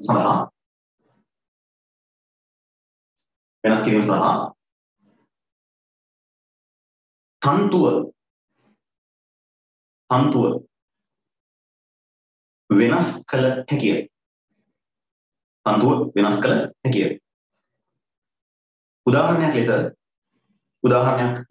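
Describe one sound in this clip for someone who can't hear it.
A man speaks in short, clear bursts with long pauses, close to a microphone.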